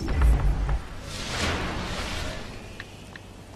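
A game character respawns with a rushing whoosh.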